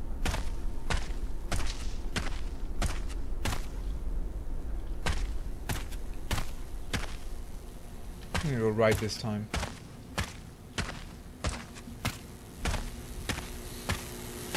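Footsteps crunch on a dirt floor at a steady walking pace.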